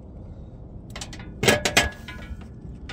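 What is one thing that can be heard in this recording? A wire crimper clicks shut.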